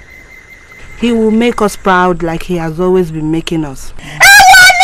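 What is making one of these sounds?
A woman speaks forcefully close by.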